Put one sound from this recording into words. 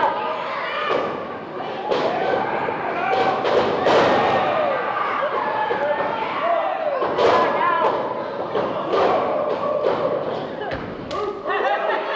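Bodies slam onto a wrestling mat with loud thuds.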